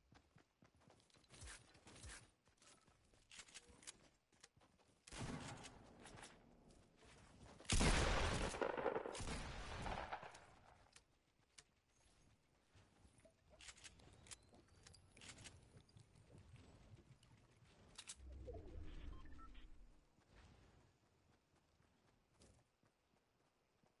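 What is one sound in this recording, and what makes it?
Footsteps run across grass and paving.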